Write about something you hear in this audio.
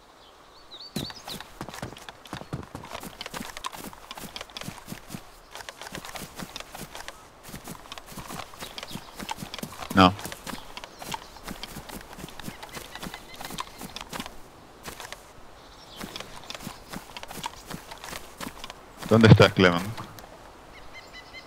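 Footsteps crunch and swish quickly through dry grass.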